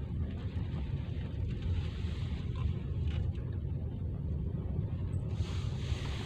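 A car drives along a road, its low engine and tyre rumble heard from inside.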